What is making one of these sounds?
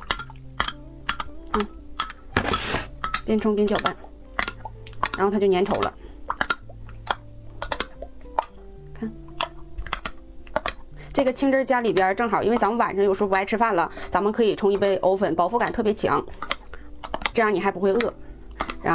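A spoon clinks against a glass mug.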